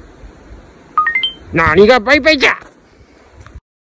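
A camcorder plays a short electronic melody as it powers off.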